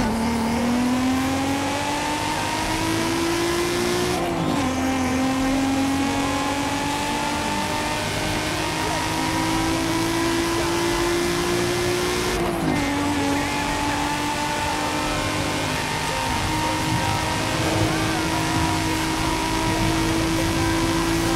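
A sports car engine revs high and climbs in pitch, dropping briefly at each gear change.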